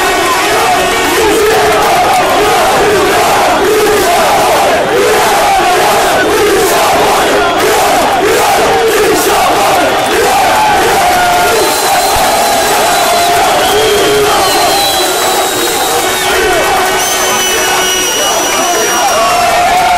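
A large crowd of men chant and sing loudly together outdoors.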